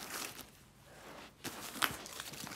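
A plastic bag rustles.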